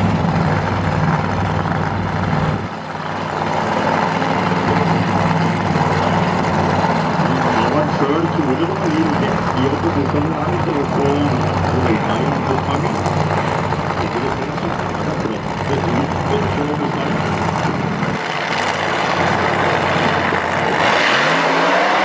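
A dragster engine idles with a loud, steady rumble.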